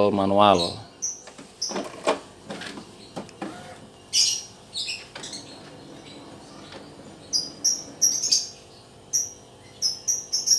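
A printer whirs and clicks as its mechanism starts moving.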